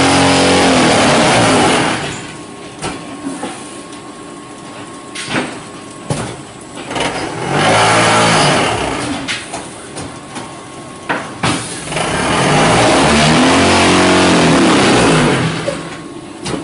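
A hydraulic motor hums loudly in bursts.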